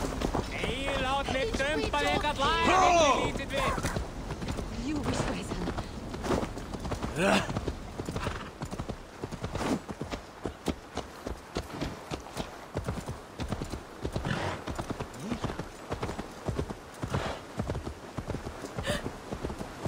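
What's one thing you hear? A horse's hooves thud steadily along a dirt path.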